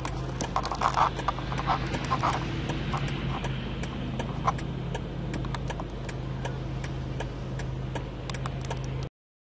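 Snow pellets tap and click against a car windshield.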